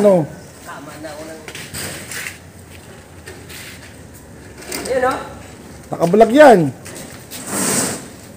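Heavy sacks thud as they are lifted off a truck.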